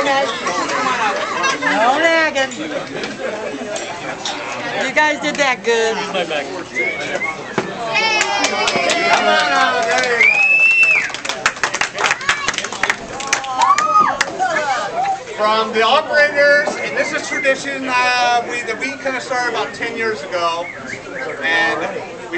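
A crowd of adults chatters loudly in a room with some echo.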